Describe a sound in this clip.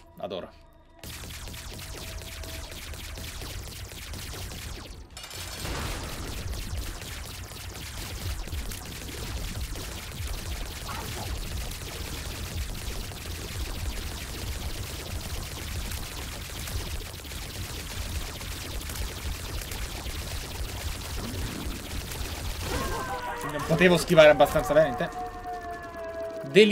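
Electronic game music and rapid popping shots play steadily.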